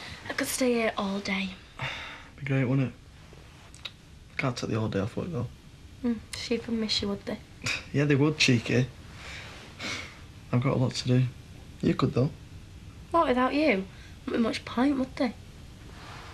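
A young man and a young woman talk softly and close by.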